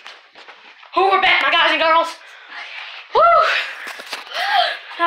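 A girl shrieks loudly close by.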